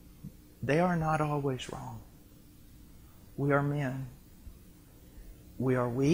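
A middle-aged man speaks calmly and close up through a clip-on microphone.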